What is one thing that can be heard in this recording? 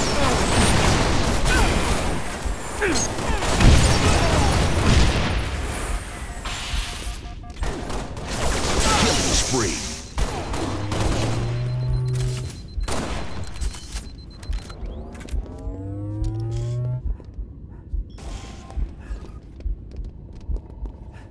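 Video game sound effects chime and swoosh.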